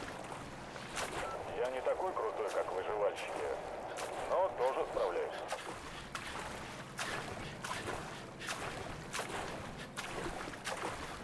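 Water splashes with steady swimming strokes.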